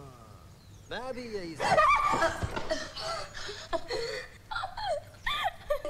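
A young woman gasps in fright.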